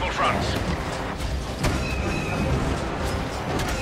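A starship roars past overhead.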